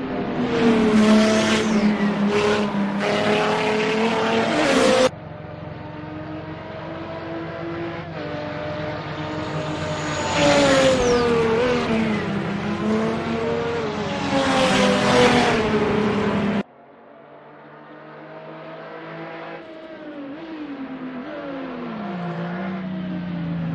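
A racing car's engine roars, revving up and down between gear changes.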